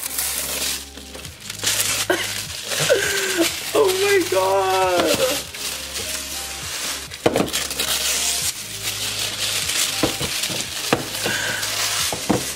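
Cardboard boxes rustle and scrape as hands handle them.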